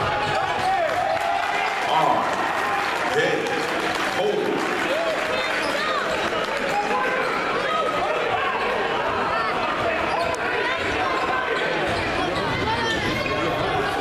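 A large crowd cheers and shouts in an echoing gym.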